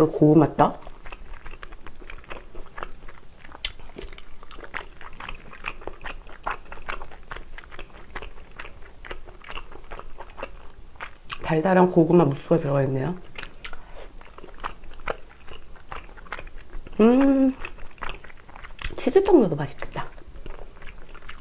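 A young woman chews food wetly and close to a microphone.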